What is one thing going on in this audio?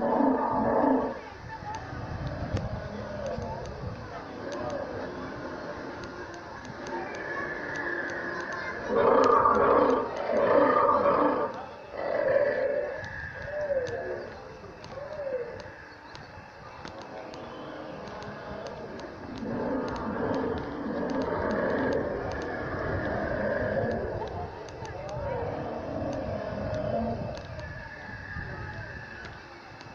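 Men, women and children talk and chatter nearby outdoors.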